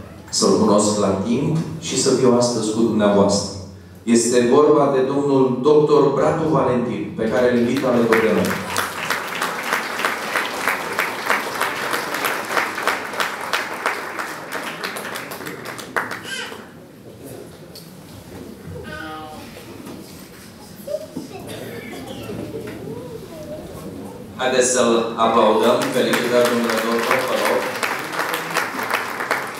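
A man speaks with animation through a microphone and loudspeakers in a large hall.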